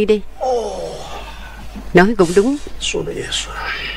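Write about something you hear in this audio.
A man speaks with agitation, close by.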